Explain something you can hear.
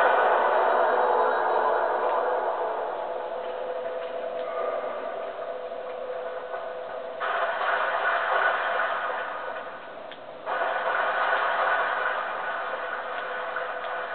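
Game music and sound effects play from a television speaker.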